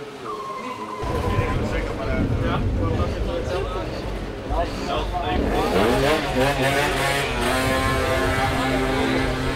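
Young men talk nearby outdoors.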